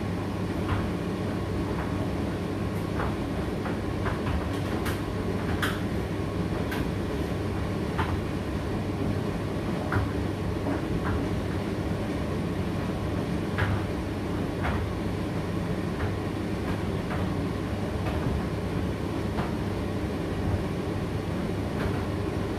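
A condenser tumble dryer runs with a steady hum.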